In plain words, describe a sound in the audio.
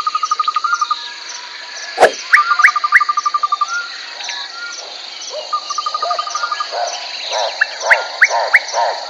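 A crocodile's feet pad softly through grass.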